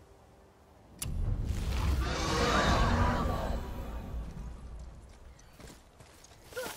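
A burst of magical energy whooshes and roars, then slowly fades.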